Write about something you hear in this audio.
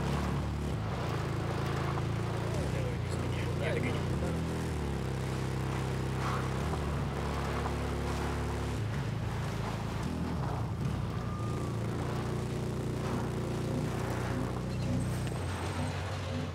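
A motorbike engine hums steadily, rising and falling with speed.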